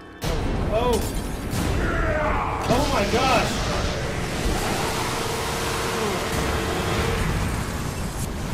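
A loud energy beam crackles and hisses.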